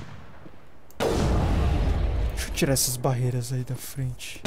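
A rifle fires a single loud shot that booms and rumbles away.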